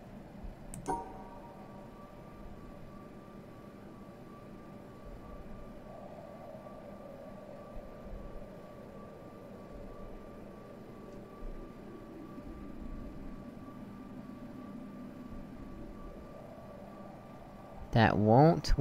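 A puzzle panel in a video game hums while a line is traced across it.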